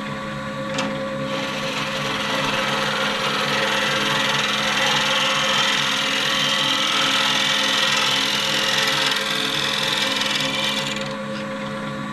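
A chisel scrapes and hisses against spinning wood.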